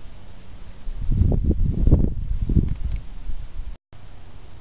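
Leaves rustle as a plant is handled.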